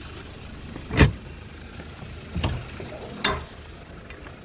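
A heavy metal door thuds open.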